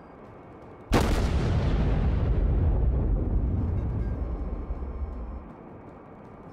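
Heavy naval guns fire with a deep, rumbling boom.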